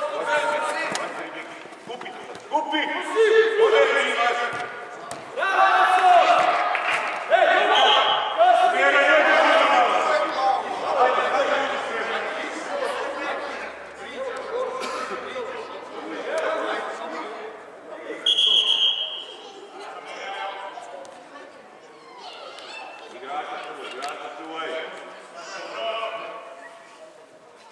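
Children shout and call out across a large echoing indoor hall.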